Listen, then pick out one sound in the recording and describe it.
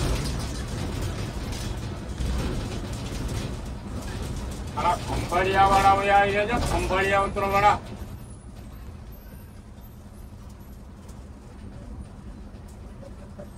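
A bus engine rumbles steadily from inside the cab.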